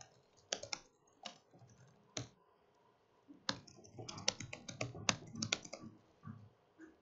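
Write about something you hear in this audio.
Keys click on a keyboard.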